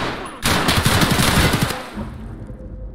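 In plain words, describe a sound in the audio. Gunfire bursts loudly and rings out.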